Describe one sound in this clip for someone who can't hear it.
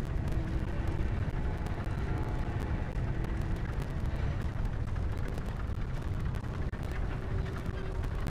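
A deep fiery rumble roars steadily.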